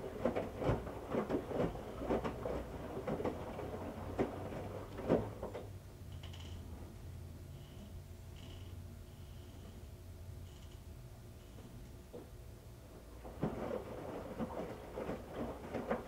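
A washing machine drum turns with a low steady hum.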